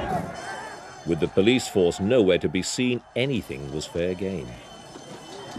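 A crowd of young men shouts and jeers loudly.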